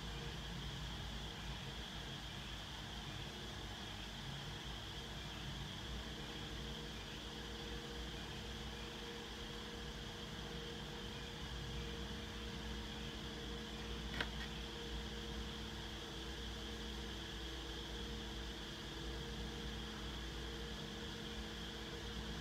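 An electric fan whirs and hums steadily close by.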